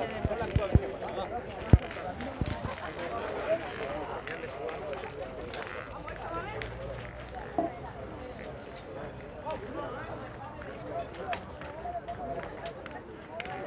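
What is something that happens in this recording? Boys talk nearby outdoors.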